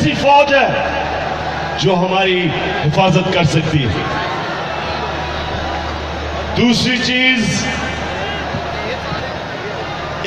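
A huge crowd cheers and roars steadily.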